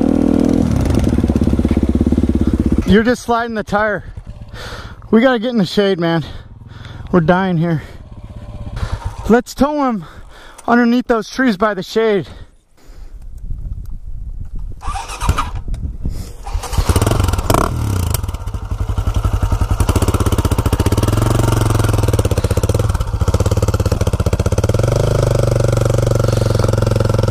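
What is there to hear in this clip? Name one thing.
A dirt bike engine idles close by.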